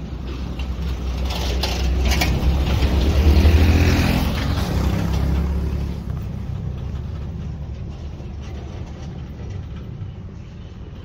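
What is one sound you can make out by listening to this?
A pickup truck drives past close by and moves off down the street.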